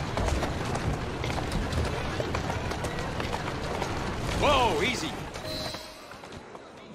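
Carriage wheels rumble and clatter over cobblestones.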